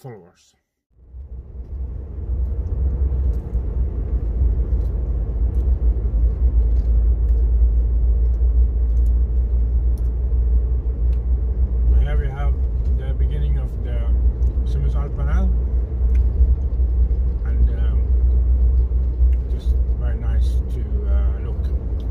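A car engine and tyres rumble steadily on a road.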